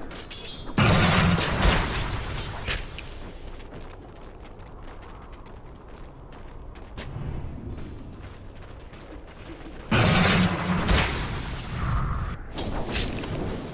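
Weapons clash and strike in quick hits.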